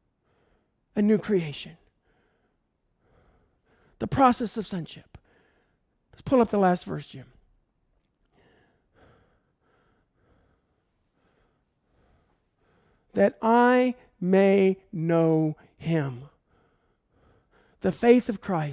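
A man speaks into a microphone in short bursts, with long pauses.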